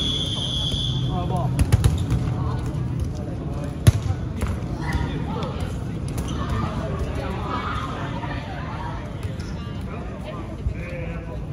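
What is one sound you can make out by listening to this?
Young people call out and chatter in an echoing hall.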